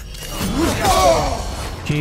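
A heavy magical blast bursts out with a whoosh.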